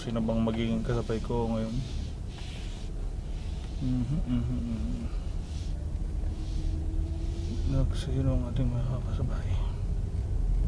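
A man speaks quietly close by inside a car.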